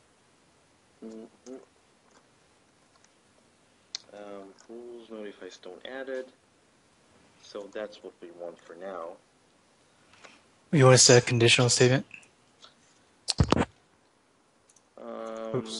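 A man talks calmly through a headset microphone.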